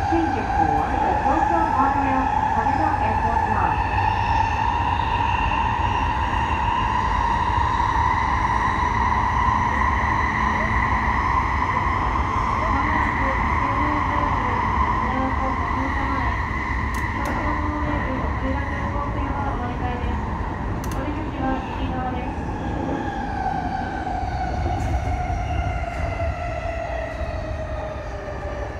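A train's electric motor whines, rising and then falling in pitch as it slows.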